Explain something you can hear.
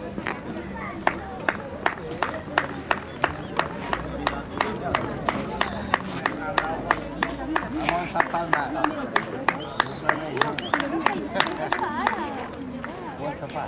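People clap their hands in a steady rhythm outdoors.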